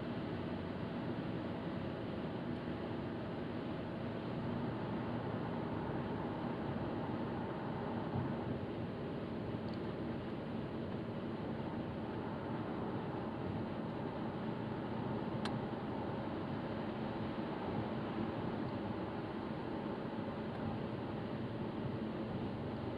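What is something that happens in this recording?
Tyres roar steadily on the road at speed.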